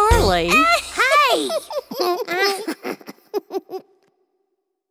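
A young boy's cartoon voice talks excitedly.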